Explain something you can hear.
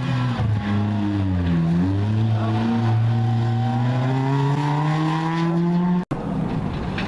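A rally car engine roars loudly as the car speeds past, its pitch rising through the gears.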